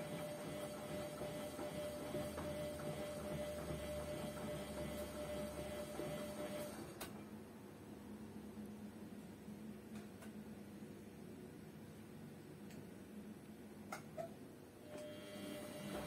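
A washing machine drum turns with a low hum and sloshing water.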